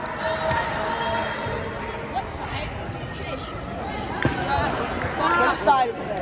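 Young women chatter and call out in a large echoing hall.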